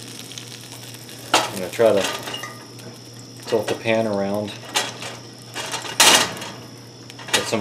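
A metal spatula scrapes and clinks against an iron pan.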